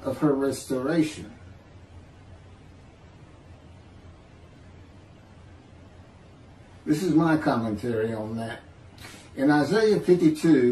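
A middle-aged man speaks calmly over an online call, pausing now and then.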